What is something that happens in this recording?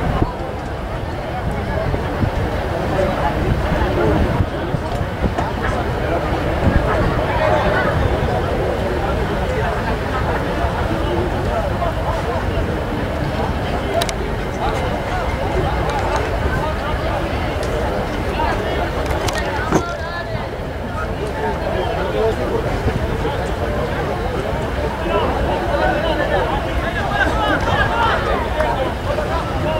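Rugby players shout to each other across the field.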